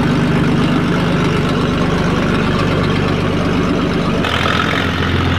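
A vintage straight-six car engine idles.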